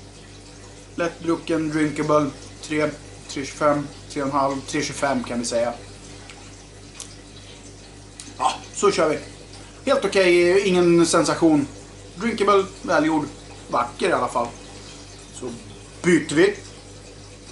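A middle-aged man talks calmly and close by, in short bursts with pauses.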